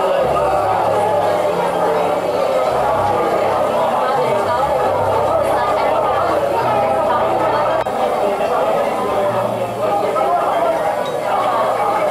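A crowd of men and women chatters all around in a large, echoing hall.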